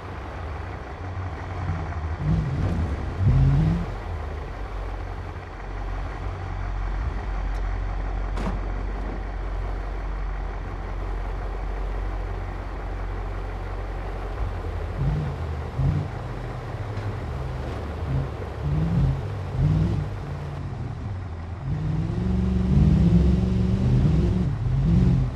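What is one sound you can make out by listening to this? An engine rumbles low and steady as a vehicle drives over rough ground.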